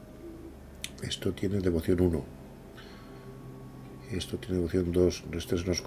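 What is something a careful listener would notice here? An older man talks close to a microphone.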